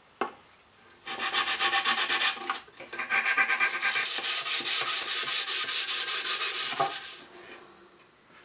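Sandpaper rubs rapidly back and forth over wood.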